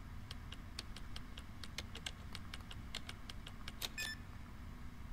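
Keypad buttons click and beep as they are pressed.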